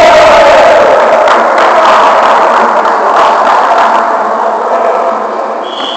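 Men's voices and shouts echo from across a large gym hall.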